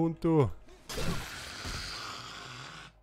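A spiked club strikes a body with a heavy, wet thud.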